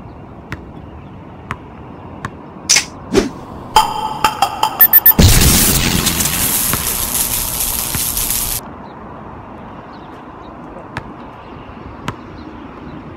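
A basketball bounces on hard ground outdoors.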